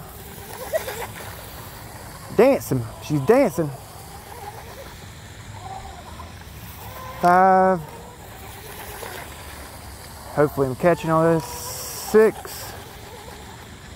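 A small motor whines as a toy boat speeds across water.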